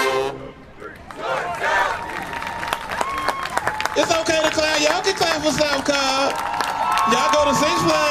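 A crowd cheers, shouts and whistles outdoors.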